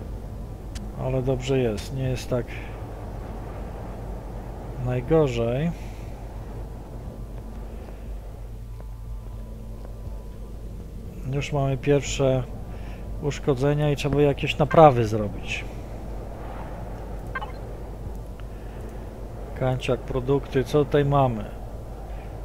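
A man talks calmly into a headset microphone, close by.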